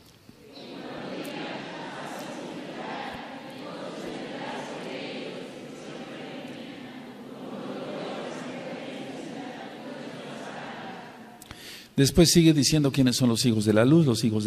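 An elderly man speaks calmly through a microphone in an echoing room.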